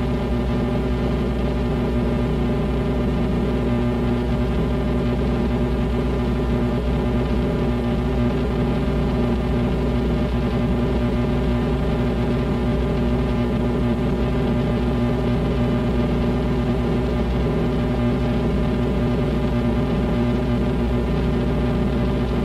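A bass guitar plays a low line through an amplifier.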